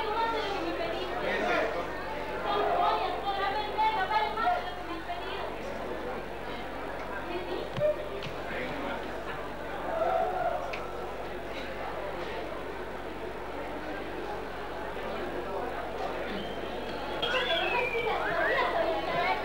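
A young woman speaks with feeling, heard from a distance in an echoing room.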